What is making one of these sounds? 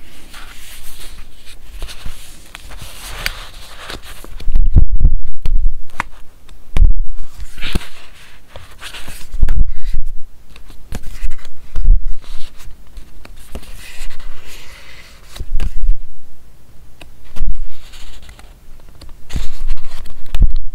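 Paper sheets rustle and crinkle close by as pages are turned.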